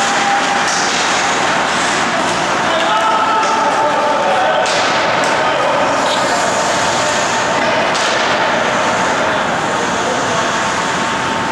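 A crowd murmurs and calls out in a large echoing arena.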